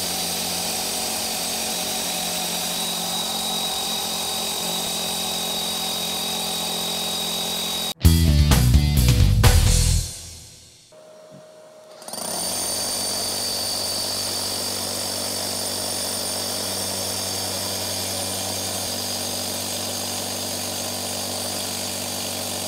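A power drill runs steadily, mixing in a bucket.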